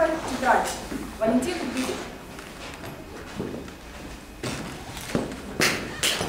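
A young woman speaks calmly in an echoing hall.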